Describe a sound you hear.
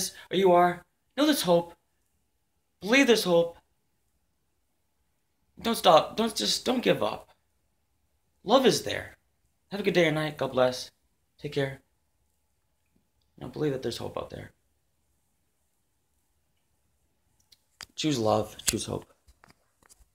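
A man speaks calmly and close up, in short phrases with pauses.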